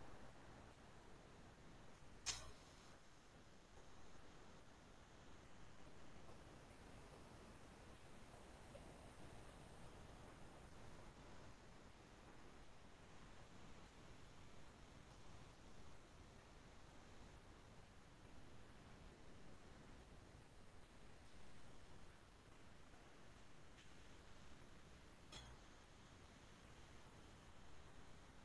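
A young woman speaks quietly over an online call.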